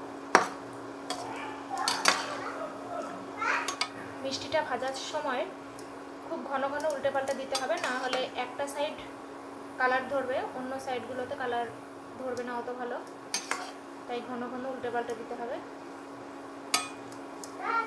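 A metal ladle clinks against a pan.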